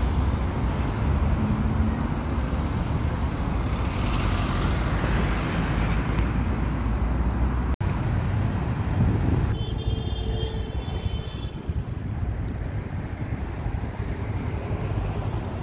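Traffic rumbles outdoors.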